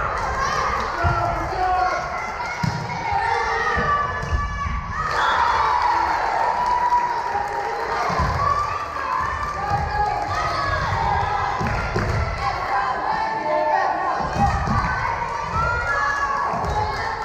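Young girls call out and chatter in a large echoing hall.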